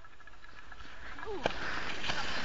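Skis scrape and hiss over snow as a skier approaches, growing louder.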